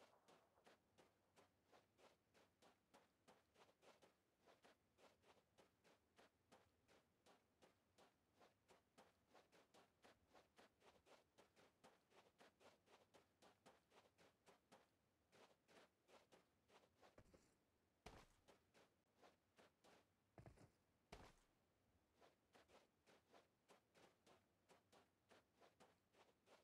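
Footsteps run over sand and grass.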